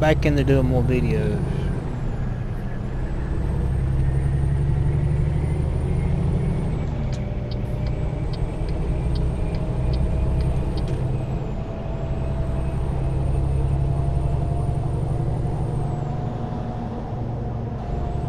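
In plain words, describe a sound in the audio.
A truck's diesel engine rumbles steadily, rising and falling as it shifts gears.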